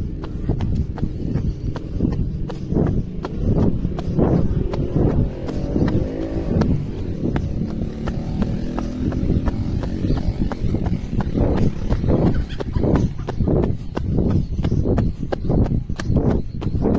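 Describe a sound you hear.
Running shoes thud in a quick rhythm on a paved path.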